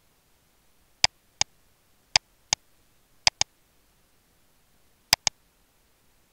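Mouse buttons click sharply in quick pairs.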